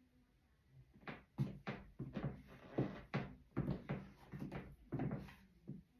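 High heels tap and knock on a wooden floor.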